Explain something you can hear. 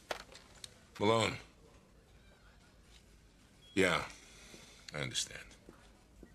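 A man talks on a telephone.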